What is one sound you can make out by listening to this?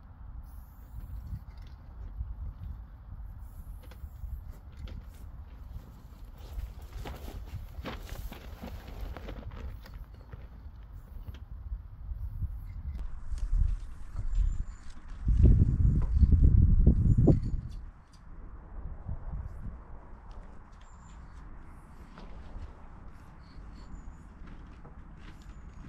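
A spray can hisses in short bursts.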